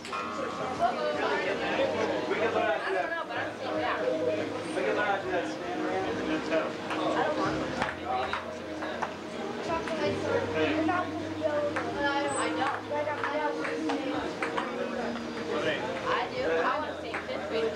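A ping-pong ball clicks on a table and paddles.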